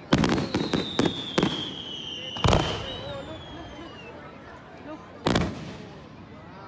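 Aerial fireworks burst with sharp booms.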